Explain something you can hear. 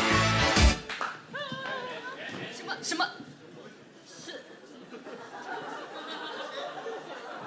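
A young woman speaks into a microphone with surprise.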